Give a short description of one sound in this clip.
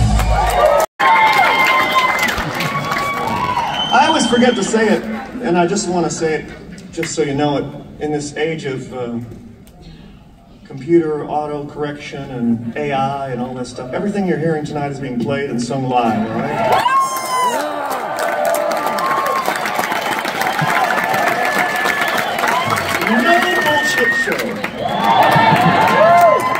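A man sings through loudspeakers in a large hall.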